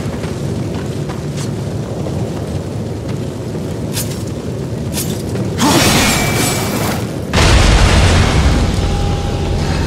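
Heavy armoured footsteps thud on a stone floor.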